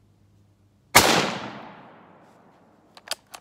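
A rifle fires a single loud shot that echoes away outdoors.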